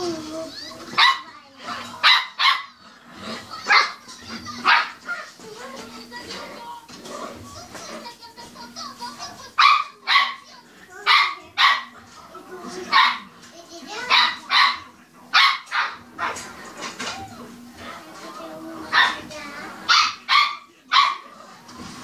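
A small dog barks sharply and repeatedly nearby.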